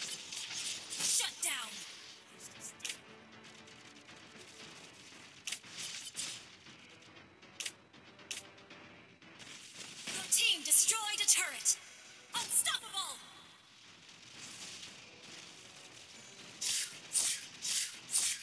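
Game sound effects of spells and attacks burst and whoosh.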